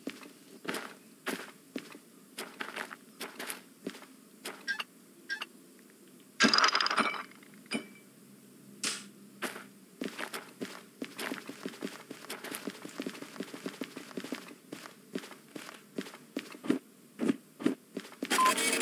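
Footsteps crunch on gravel and tap on hard ground.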